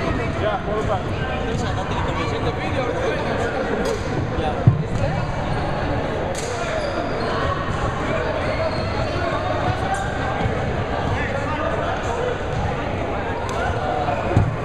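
Many people talk at once in a large echoing hall.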